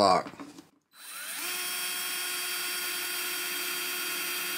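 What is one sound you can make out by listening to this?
A power drill whirs, rising quickly and then running steadily.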